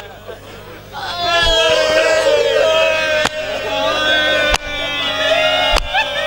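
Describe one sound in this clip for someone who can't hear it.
A man chants a mournful lament into a microphone.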